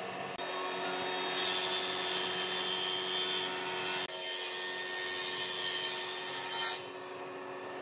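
A wood planer machine whirs steadily as boards are fed through it.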